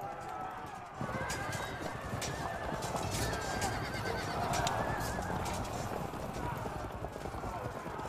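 Soldiers clash in battle with a dense din of clanging weapons.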